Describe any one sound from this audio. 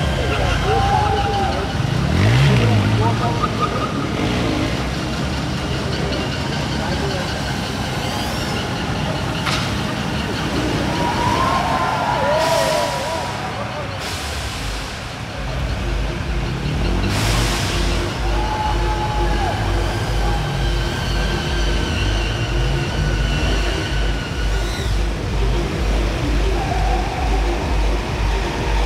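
Sport motorcycle engines rev hard as riders pull wheelies.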